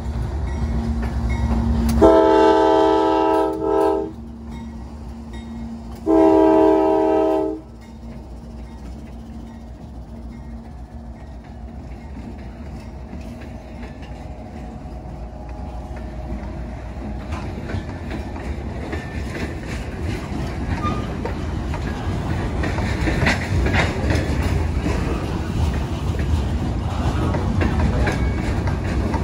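A diesel locomotive engine rumbles close by.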